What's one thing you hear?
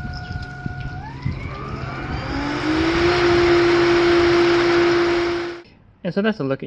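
A pool pump motor speeds up with a rising whine and a rush of water.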